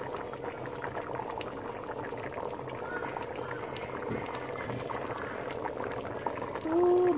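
Soup bubbles and simmers in a pot.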